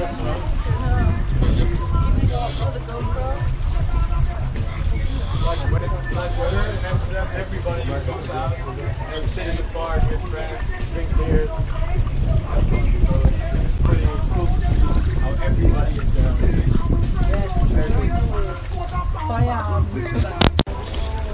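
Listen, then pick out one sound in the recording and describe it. Men and women chat and talk over one another close by.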